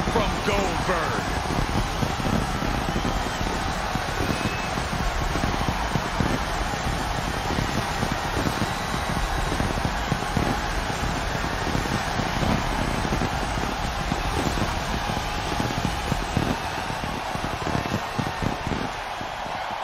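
Pyrotechnic spark fountains hiss.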